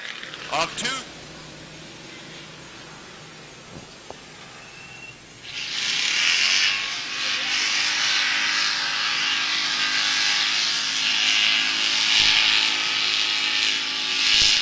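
A race car engine hums steadily as the car drives slowly around the track.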